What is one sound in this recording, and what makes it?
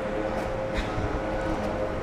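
Air conditioning units hum steadily nearby.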